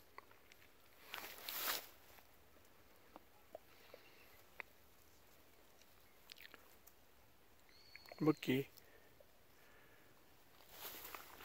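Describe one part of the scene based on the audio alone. Dry grass rustles as dogs push through it.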